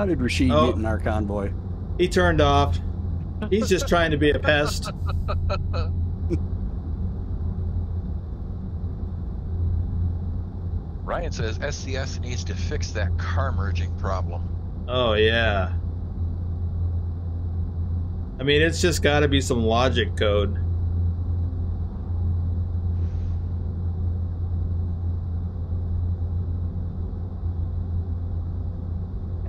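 A truck engine hums low and steady.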